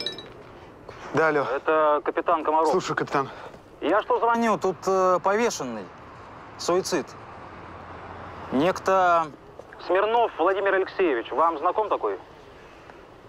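A young man answers on a phone.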